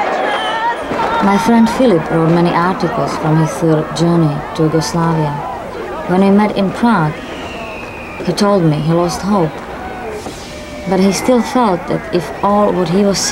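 Fireworks crackle and bang nearby.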